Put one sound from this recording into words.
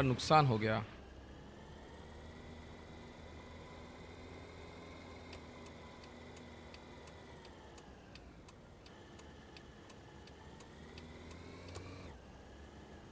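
A car engine hums steadily as a car drives.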